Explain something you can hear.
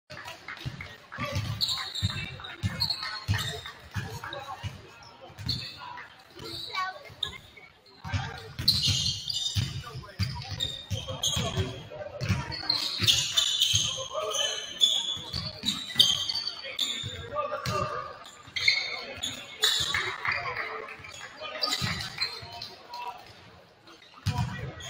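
Basketballs bounce on a hard gym floor, echoing in a large hall.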